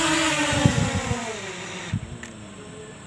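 A small drone's propeller whine drops in pitch and winds down as it lands.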